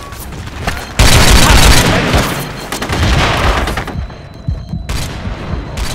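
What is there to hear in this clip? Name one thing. A machine gun fires loud rapid bursts close by.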